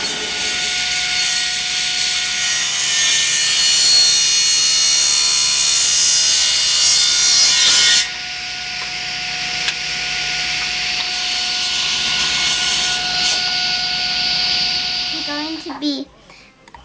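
A table saw whines loudly as it cuts through wood.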